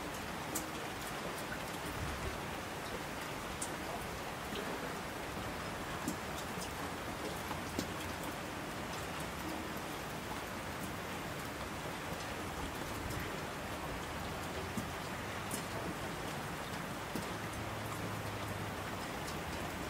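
Heavy rain pours down steadily, with scattered drops pattering close by.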